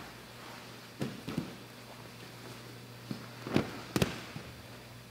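Bodies thump and slap onto a padded mat.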